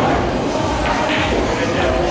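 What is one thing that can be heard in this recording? A pool cue strikes the cue ball.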